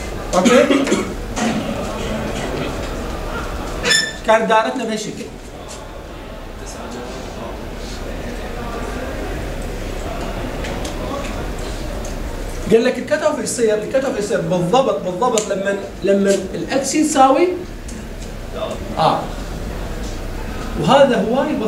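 A man explains in a clear, even voice.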